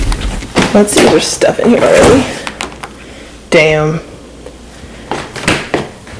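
A refrigerator door opens and closes.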